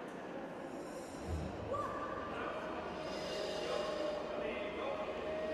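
Wooden swords knock together in an echoing hall.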